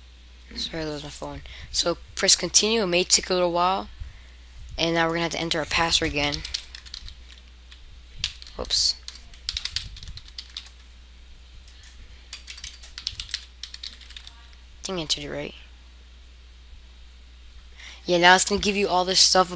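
A young man talks calmly into a nearby microphone.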